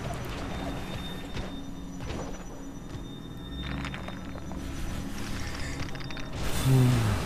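Metallic footsteps clank quickly on a hard stone floor.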